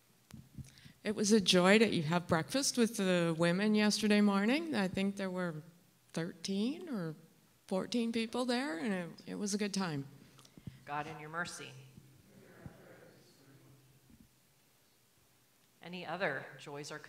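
A man speaks calmly into a microphone in a large, echoing room.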